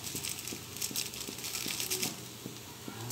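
A spoon scrapes and stirs food in a pan.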